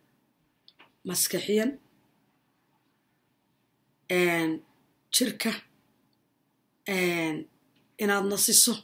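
A woman speaks calmly and close up, in short phrases with pauses.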